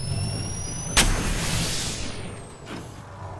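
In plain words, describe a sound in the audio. A canister bursts with a sharp crack and a fading hiss.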